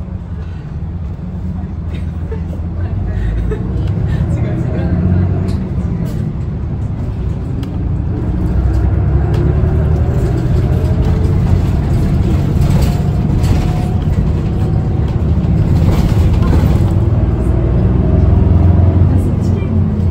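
An engine rumbles steadily from inside a moving vehicle.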